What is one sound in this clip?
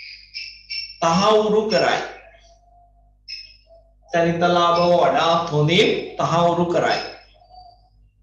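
A man speaks calmly and clearly, close by, in short bursts with pauses.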